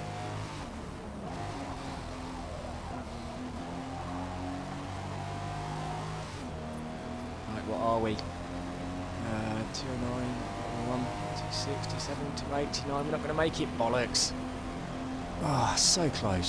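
A car engine hums steadily and revs as the car speeds up and shifts gears.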